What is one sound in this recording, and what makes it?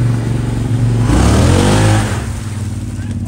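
An engine revs up sharply and then settles.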